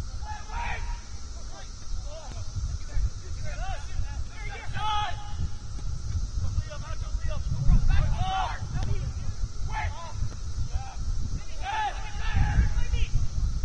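Young players shout to each other across an open field, some way off.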